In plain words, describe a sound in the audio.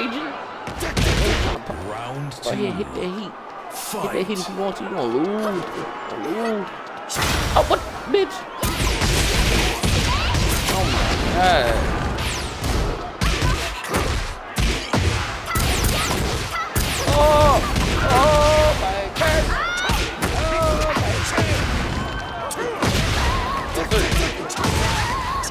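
Punches and kicks land with sharp, heavy thuds in quick bursts.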